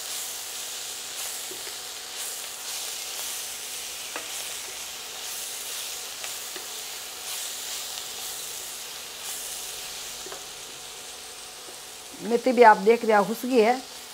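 A wooden spatula scrapes and stirs in a metal pan.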